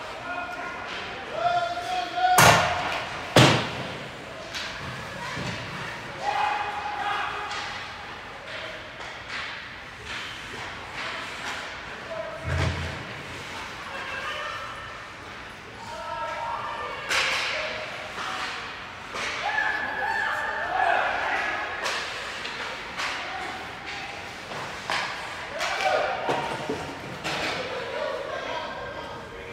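Spectators shout and cheer in a large echoing rink.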